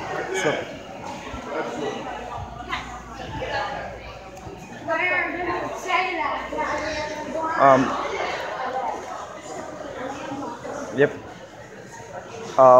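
A crowd of adults and children chatters nearby.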